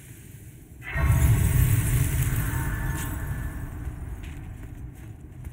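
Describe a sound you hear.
A deep chime swells and rings out, then fades slowly.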